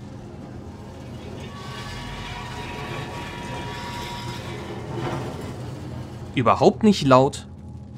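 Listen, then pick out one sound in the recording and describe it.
A wooden crate scrapes as it is dragged across the floor.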